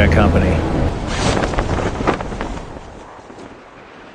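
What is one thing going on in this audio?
A parachute snaps open with a flapping rustle.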